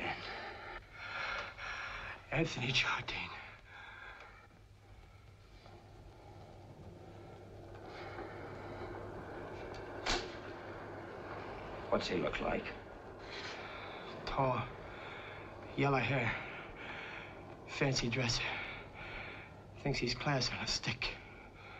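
A heavy-set older man speaks breathlessly and groans, close by.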